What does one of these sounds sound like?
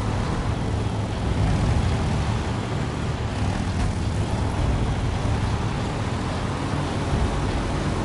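Tyres crunch over rocky gravel.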